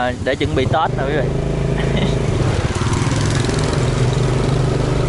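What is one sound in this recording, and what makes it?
Motorbike engines hum as they ride past.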